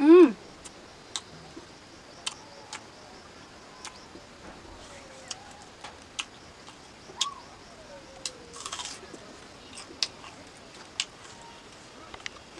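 A young woman chews food close by with wet smacking sounds.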